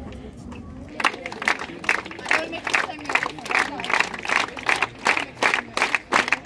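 A crowd claps in a steady rhythm outdoors.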